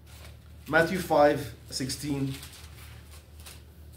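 Paper pages rustle as a man turns them.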